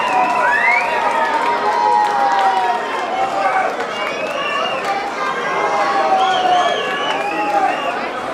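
A band plays loud rock music through loudspeakers.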